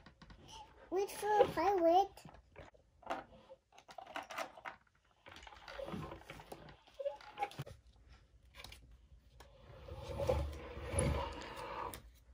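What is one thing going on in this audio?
Plastic toy pieces click and rattle.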